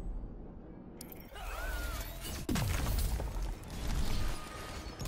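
Fighters' blows land with sharp thuds.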